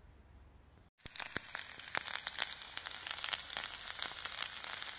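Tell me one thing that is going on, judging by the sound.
Potatoes sizzle and crackle as they fry in a pan.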